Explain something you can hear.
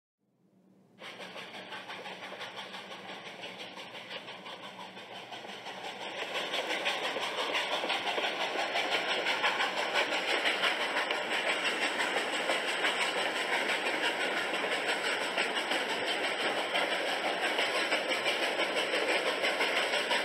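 A steam locomotive chugs steadily, its puffs growing louder.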